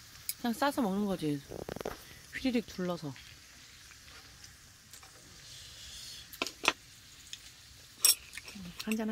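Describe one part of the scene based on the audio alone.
Metal tongs clink against a hot pan.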